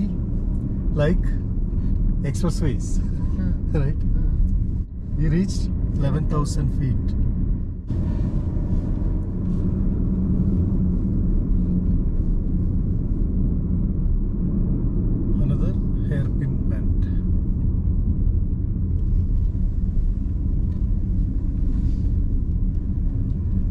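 Tyres rumble steadily on a paved road.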